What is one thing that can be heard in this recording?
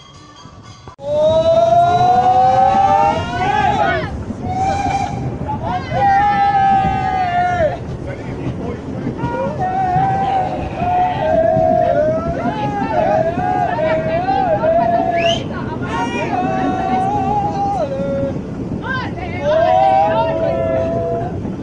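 Train wheels squeal shrilly against the rails.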